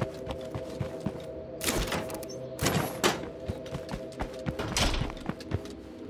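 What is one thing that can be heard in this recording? Footsteps crunch on dirt as a character runs.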